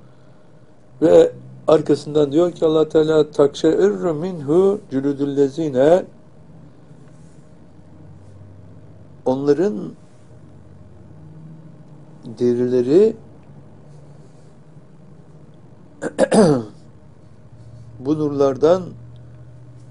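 An elderly man reads aloud calmly and slowly, close to a microphone, with long pauses.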